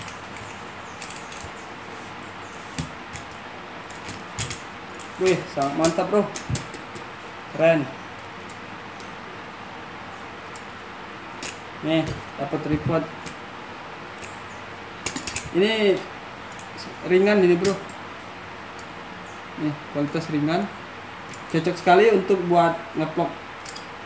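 Metal tripod legs click and clatter as they are handled.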